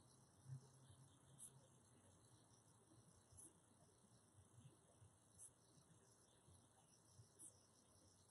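A man speaks slowly and calmly, close to a microphone.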